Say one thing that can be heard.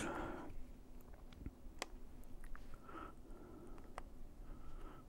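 Buttons on a small handheld meter click softly.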